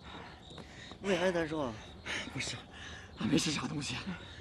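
A young man talks in a pained, complaining voice.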